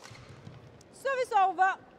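Shoes squeal on a court floor.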